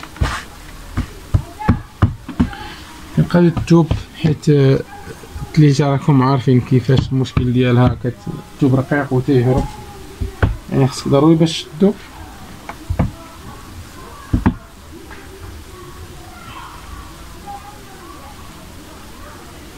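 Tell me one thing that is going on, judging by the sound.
Fabric rustles as hands smooth it flat.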